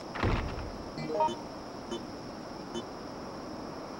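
Short electronic chimes beep in quick steps.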